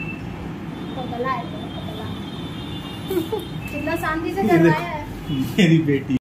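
A young woman talks affectionately close by.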